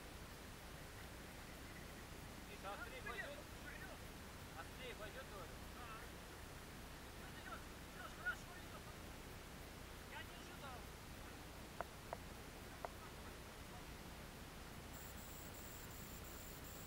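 Wind rumbles outdoors over open water.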